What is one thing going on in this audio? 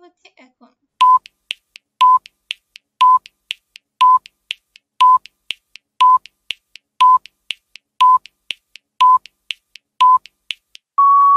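A countdown timer ticks with short beeps, once a second.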